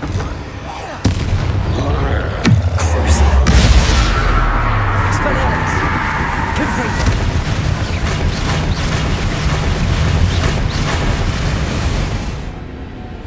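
Magic spells crackle and burst with loud booms.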